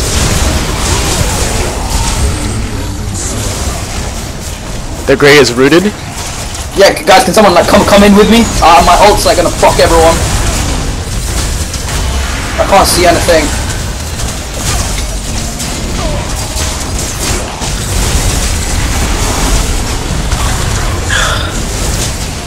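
Magic blasts crackle and boom in a hectic fight.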